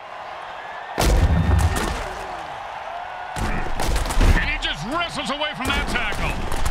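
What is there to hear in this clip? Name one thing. Armoured players crash together with heavy thuds.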